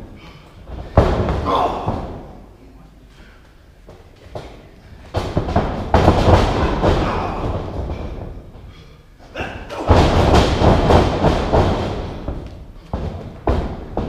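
Bodies slam heavily onto a wrestling ring, booming and echoing through a large hall.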